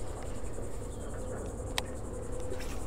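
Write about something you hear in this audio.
A baitcasting reel clicks as hands handle it.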